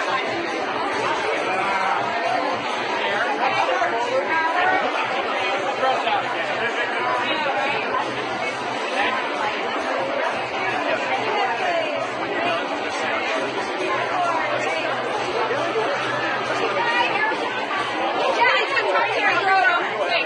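A crowd of people chatters loudly all around.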